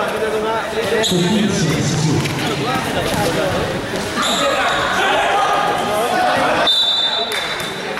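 Young players shout and call out to each other in an echoing hall.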